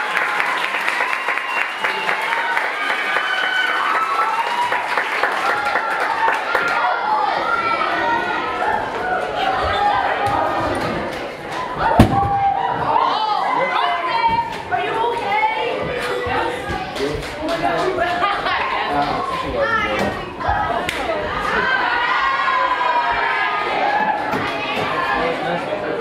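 Young men and women chatter and call out to each other in a large echoing hall.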